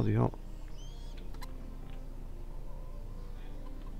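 A hen clucks close by.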